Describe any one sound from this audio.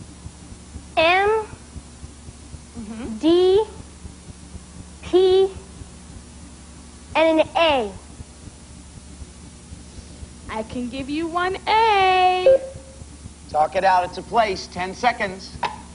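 A young boy calls out short words one at a time through a television broadcast.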